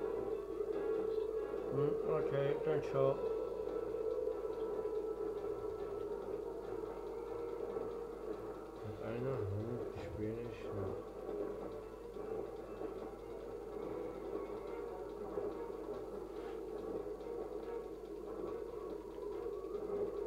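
Video game music and effects play through a television loudspeaker in a room.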